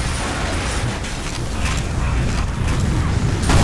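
Flames roar steadily.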